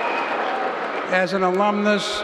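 An elderly man speaks into a microphone over loudspeakers.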